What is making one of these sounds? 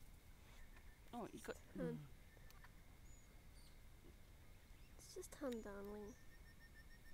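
A parrot squawks loudly a few times.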